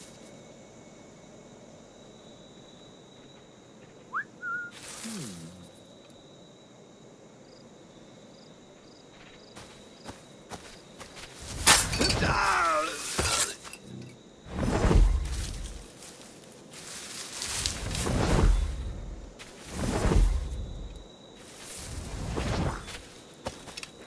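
Footsteps rustle through dense leafy undergrowth.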